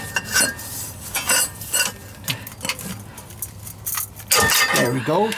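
A metal bar knocks and scrapes against metal parts.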